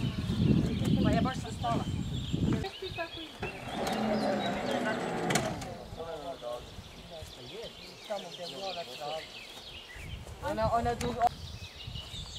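A group of young people talk nearby, outdoors.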